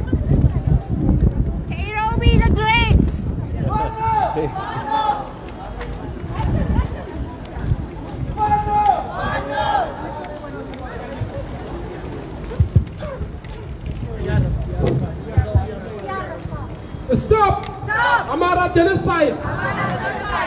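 A crowd of marchers chants loudly outdoors.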